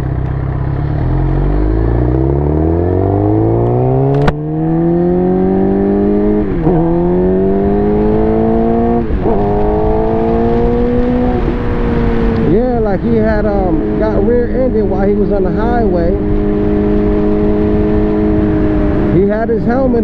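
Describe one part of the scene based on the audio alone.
A motorcycle engine revs up and shifts through gears as it speeds away.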